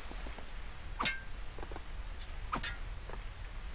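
Hands slap and grip onto a stone wall.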